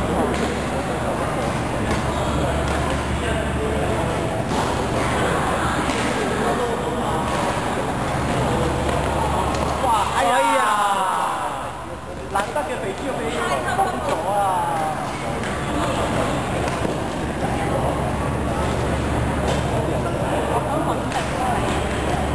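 Young men and women call out and chatter in a large echoing hall.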